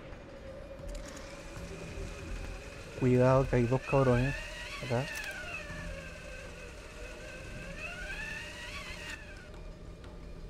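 A pulley whirs and hisses along a taut rope.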